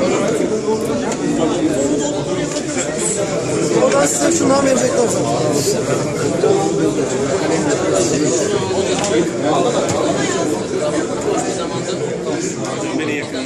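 A crowd of men chatter all around, close by, in an echoing room.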